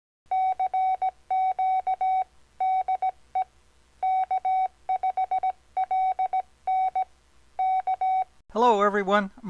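Morse code beeps out in short and long bursts of a steady tone.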